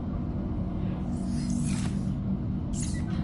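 A soft whoosh sounds as a menu closes.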